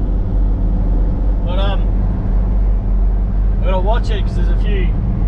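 A car engine drones steadily from inside the car.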